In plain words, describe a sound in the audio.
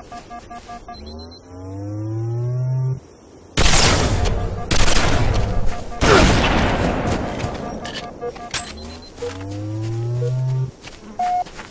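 A sniper rifle's scope whirs with a rising hum as it zooms in.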